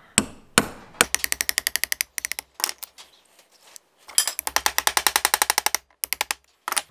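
A ratchet wrench clicks rapidly as a bolt is turned.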